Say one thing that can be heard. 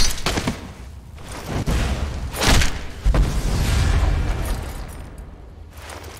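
A magic spell crackles and bursts with loud roaring blasts.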